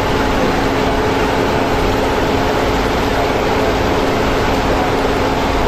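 Rushing water churns and roars loudly close by.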